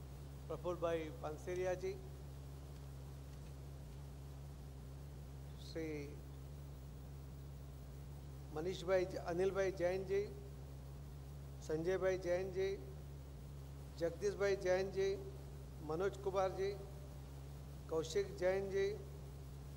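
A man speaks slowly and formally into a microphone, with long pauses.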